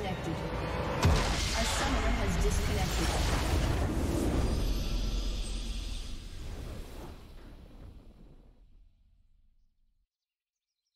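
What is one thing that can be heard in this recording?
A triumphant fanfare swells and slowly fades away.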